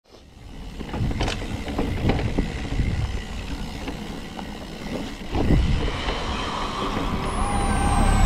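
Bicycle parts clatter and knock over bumps.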